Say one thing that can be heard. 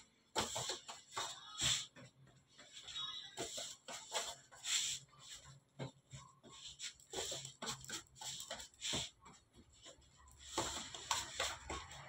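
Hands rub and knead dough with soft rustling.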